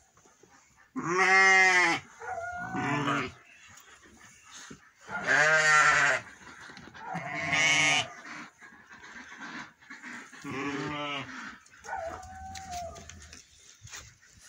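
Sheep bleat loudly close by, again and again.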